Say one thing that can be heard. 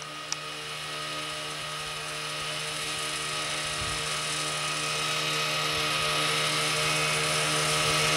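A snowmobile engine drones steadily and grows louder as it approaches.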